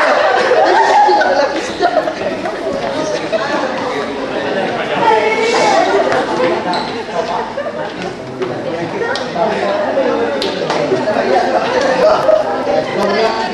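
A group of people chatter in the background.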